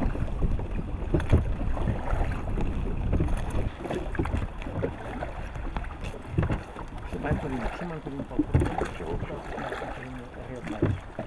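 Water drips and splashes as a fishing net is hauled from a river.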